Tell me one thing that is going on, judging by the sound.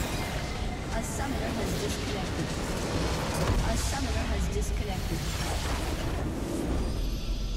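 Game spell effects crash and burst loudly.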